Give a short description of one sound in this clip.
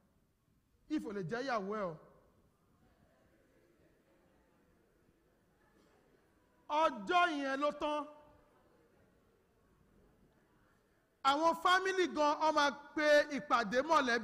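A man sings out loudly in short phrases, echoing in a large hall.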